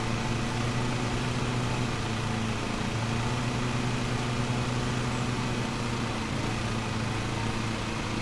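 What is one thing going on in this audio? A riding mower engine hums steadily.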